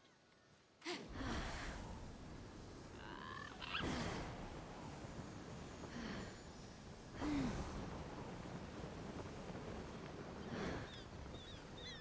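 Wind rushes loudly past during a fast glide through the air.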